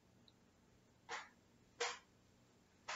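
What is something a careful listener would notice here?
A woman breathes out sharply.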